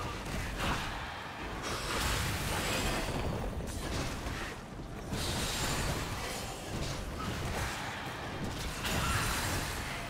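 Video game weapons strike with repeated hits.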